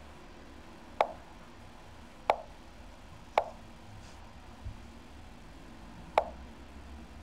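Short sharp clicks sound as chess pieces are moved on a computer.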